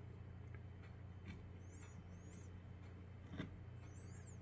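A hand brushes lightly against a stone in a plant pot.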